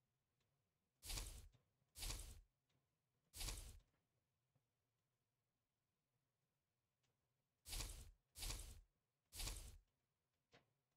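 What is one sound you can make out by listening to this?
Short whooshing game sound effects play in bursts.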